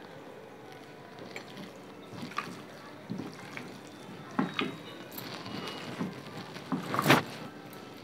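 Hands squish and mix soft, wet food in a bowl.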